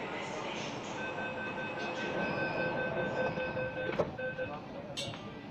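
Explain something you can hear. A door warning chime beeps rapidly.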